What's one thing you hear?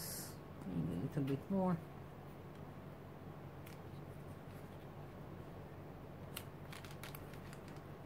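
A glue stick rubs across paper.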